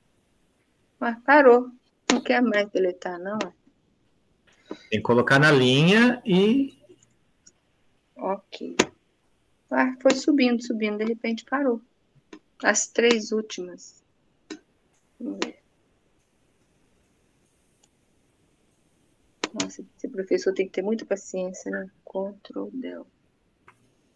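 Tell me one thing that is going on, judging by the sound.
A middle-aged woman talks calmly over an online call.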